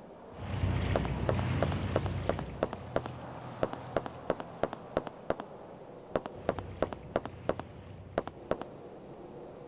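Boots tread on a hard floor.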